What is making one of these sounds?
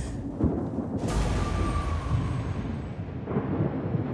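A blast booms and scatters debris.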